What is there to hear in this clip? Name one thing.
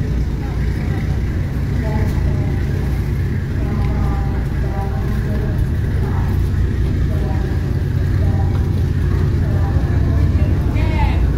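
A boat engine rumbles steadily close by.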